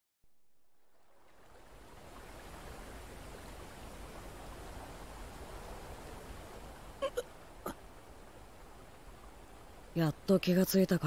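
Water pours steadily down a waterfall.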